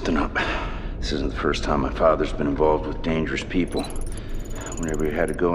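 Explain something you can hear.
A man speaks in a low, serious voice close by.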